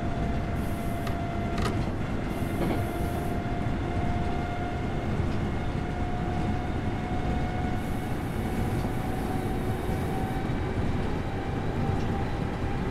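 Train wheels rumble and clack over the rails.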